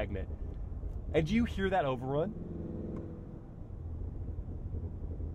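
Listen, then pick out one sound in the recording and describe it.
A car engine hums steadily with road rumble inside the cabin.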